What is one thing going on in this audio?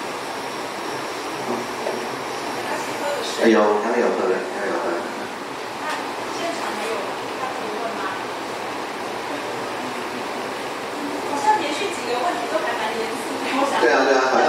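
A woman speaks calmly through a microphone and loudspeakers in a room with some echo.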